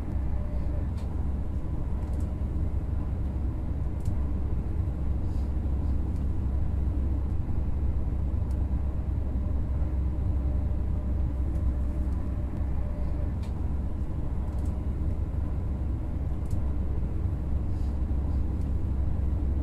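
Train wheels click faintly over rail joints.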